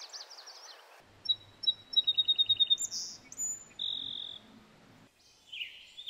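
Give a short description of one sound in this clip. A sparrow sings a song of clear notes and a fast trill.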